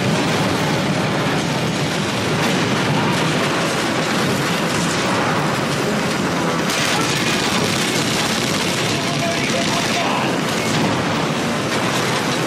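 Explosions boom and rumble one after another.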